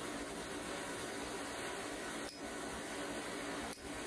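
A steel punch clinks against hot metal on an anvil.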